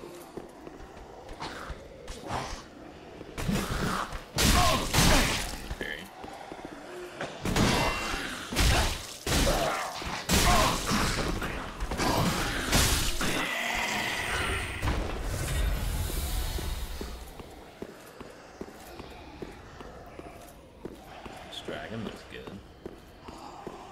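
Footsteps clatter over stone.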